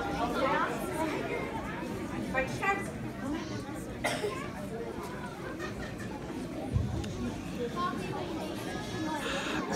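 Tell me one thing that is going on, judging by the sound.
A large group of young children sings together in an echoing hall.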